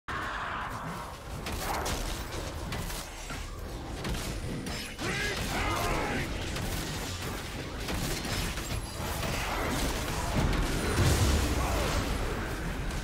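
Game combat effects clash and whoosh in quick bursts.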